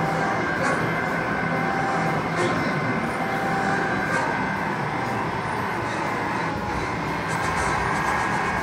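An arcade shooting game plays loud electronic sound effects and music.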